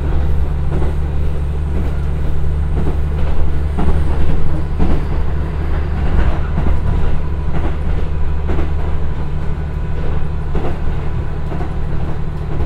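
A diesel train engine drones steadily at close range.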